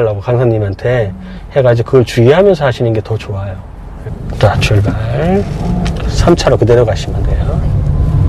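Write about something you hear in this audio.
An elderly man speaks calmly close by, inside a car.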